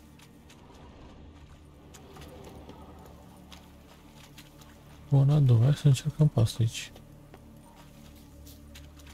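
Footsteps swish through wet grass.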